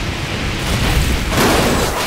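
A huge fiery blast roars.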